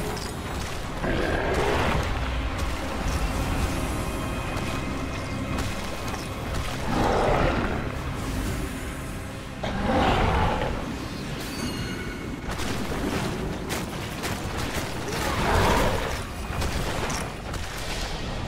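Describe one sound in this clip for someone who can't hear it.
Magic spells whoosh and crackle in bursts over a rumbling battle.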